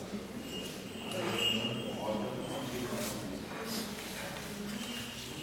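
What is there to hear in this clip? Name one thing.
A man speaks into a microphone over a loudspeaker in an echoing hall.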